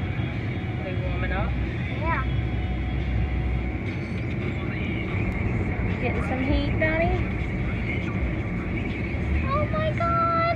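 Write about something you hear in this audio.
A young girl talks softly and close by.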